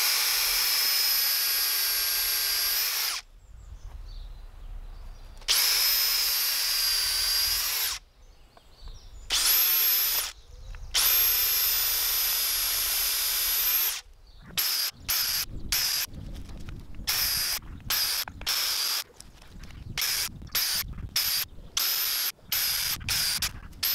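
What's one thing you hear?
A cordless drill whirs loudly in bursts, with short quick pulses toward the end.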